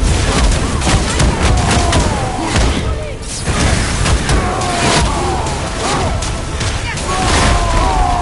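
Heavy blows and impacts thud and crash in quick succession.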